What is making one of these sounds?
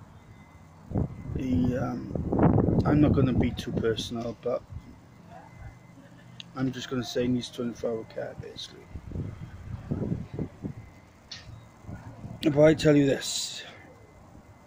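A man talks calmly and close up, in short bursts with pauses.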